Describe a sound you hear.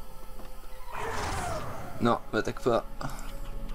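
A monster snarls close by.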